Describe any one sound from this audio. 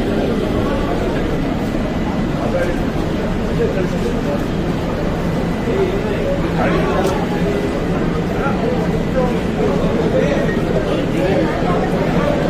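A crowd of men talk and murmur nearby outdoors.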